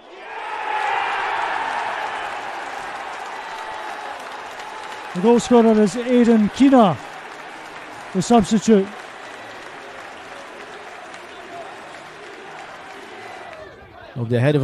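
A large crowd cheers and roars outdoors, then quiets down.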